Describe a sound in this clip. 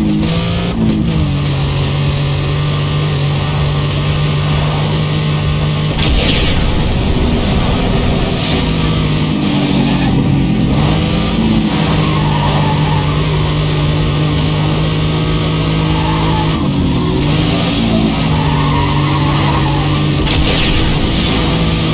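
A racing car engine roars steadily, its pitch rising and dropping as it shifts gears.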